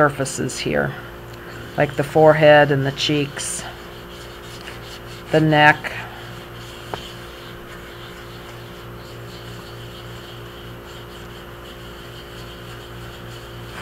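Hands handle and rub a hollow plastic doll head on a soft towel.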